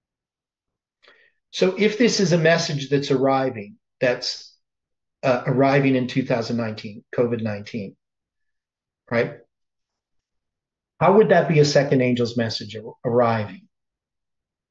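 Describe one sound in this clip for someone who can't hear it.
An older man talks with animation, close to a microphone.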